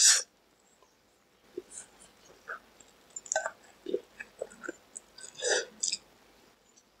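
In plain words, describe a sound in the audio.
A young man slurps noodles close to a microphone.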